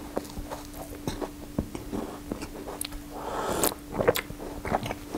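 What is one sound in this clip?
A man slurps a drink from a mug.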